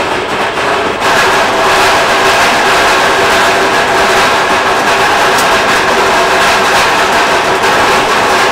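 Golf balls clatter and rattle inside a machine.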